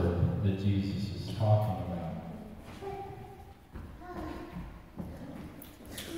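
A middle-aged man speaks into a microphone, heard through a loudspeaker in a large echoing hall.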